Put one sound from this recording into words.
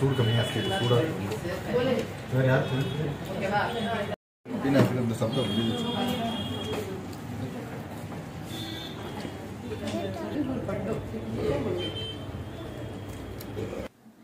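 Several adults and children talk and chatter at once in a noisy room.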